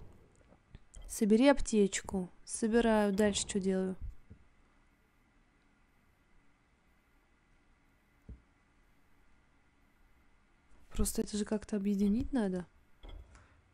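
A young woman speaks close into a microphone, with animation.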